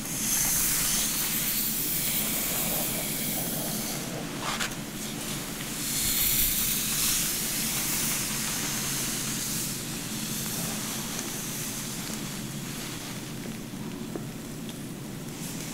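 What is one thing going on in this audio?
Hands rustle and brush through hair up close.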